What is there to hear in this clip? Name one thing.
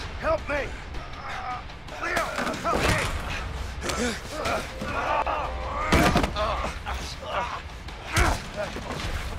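Heavy blows thud as two men scuffle.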